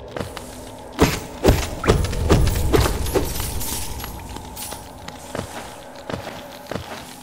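Sharp thuds and swishes sound in quick bursts.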